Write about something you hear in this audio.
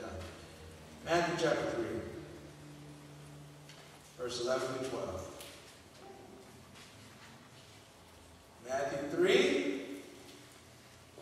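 A man speaks slowly and calmly through a microphone, in short phrases with pauses.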